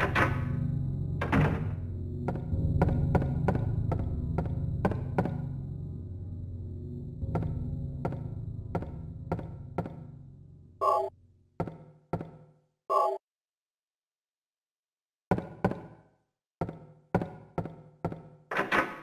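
Footsteps fall on a wooden floor.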